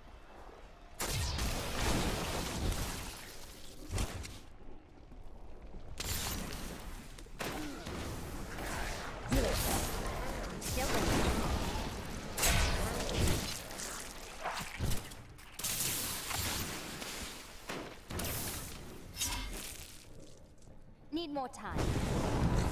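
Game spells crackle and explode in rapid bursts.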